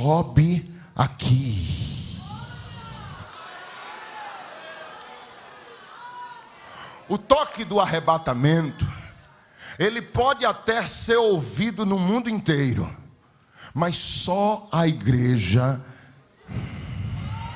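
A man preaches with animation into a microphone in a large echoing hall.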